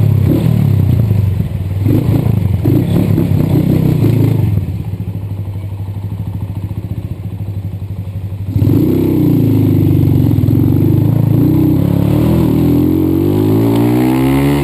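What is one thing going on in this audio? A motorcycle engine idles and revs loudly close by.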